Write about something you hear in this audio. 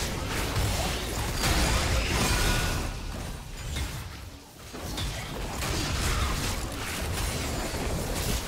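Magical blasts and clashing weapons crackle and burst in a fast fight.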